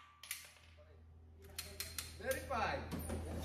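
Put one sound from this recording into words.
Metal parts of a pistol click as it is handled.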